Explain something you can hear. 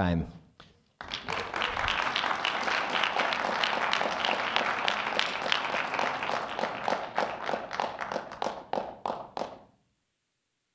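An audience claps and applauds in a large room.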